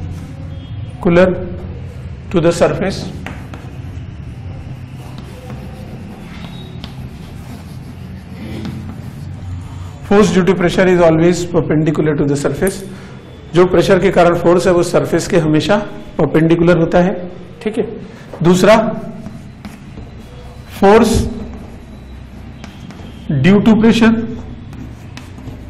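A man speaks calmly and clearly into a close microphone, as if teaching.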